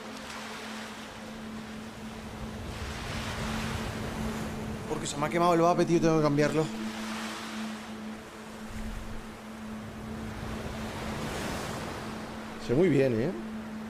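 Gentle waves wash onto a shore in slow swells.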